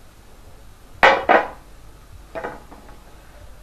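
A glass stopper clinks against a glass bottle.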